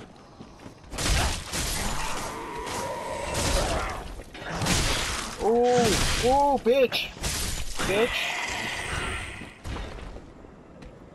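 A sword clashes and slashes in a fight.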